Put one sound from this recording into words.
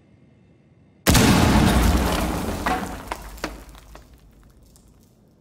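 An explosion booms loudly and rumbles away.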